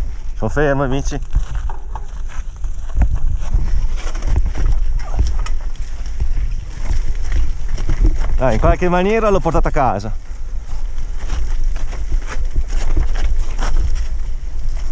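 Bicycle tyres crunch and rattle over rocky dirt.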